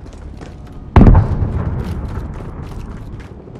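A loud blast booms close by and rumbles away.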